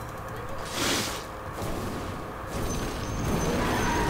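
Many creatures clash in a crowded fight.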